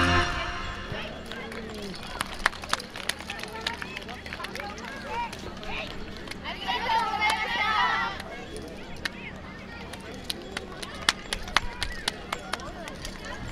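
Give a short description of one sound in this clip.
Wooden hand clappers clack sharply now and then.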